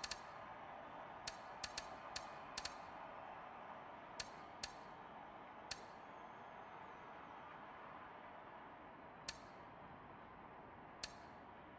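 Short sharp menu clicks tick now and then.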